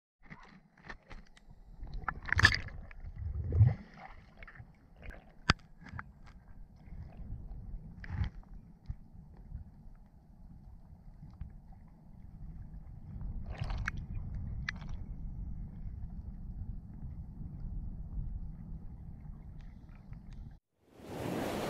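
Water rumbles and gurgles, muffled underwater.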